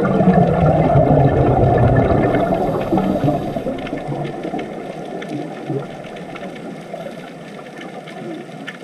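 Scuba divers' breathing bubbles gurgle and rumble underwater.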